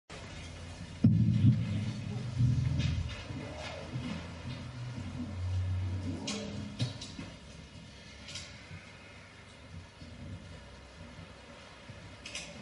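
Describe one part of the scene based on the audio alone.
A small band plays music.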